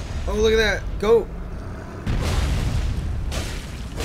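A huge creature crashes heavily to the ground.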